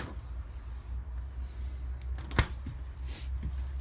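A refrigerator door thuds shut.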